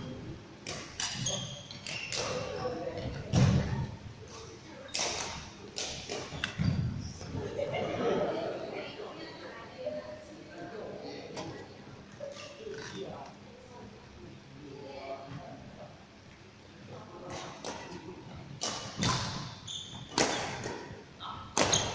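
Badminton rackets strike a shuttlecock with sharp echoing smacks in a large hall.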